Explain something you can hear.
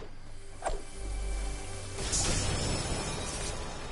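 A treasure chest opens with a bright shimmering chime.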